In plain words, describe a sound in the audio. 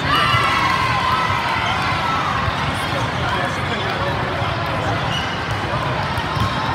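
A crowd of spectators chatters steadily.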